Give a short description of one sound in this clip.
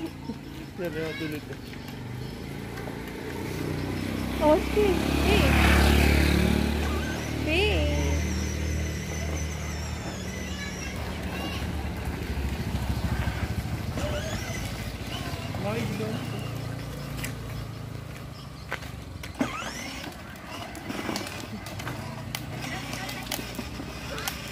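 A small electric toy car whirs as it drives.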